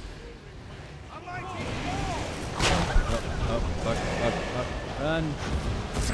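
Magic blasts whoosh and crash during a fight.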